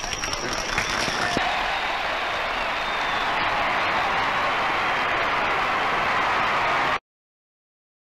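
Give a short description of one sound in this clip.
A large crowd applauds and cheers outdoors.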